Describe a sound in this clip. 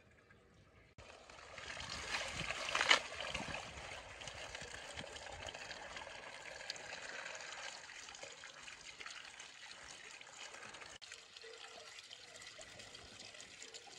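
Water pours from a tap into a metal bowl.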